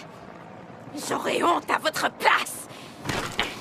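A young man cries out in distress.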